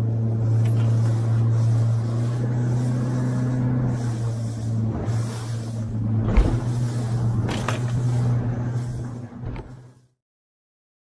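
A boat's hull slaps and splashes through choppy water.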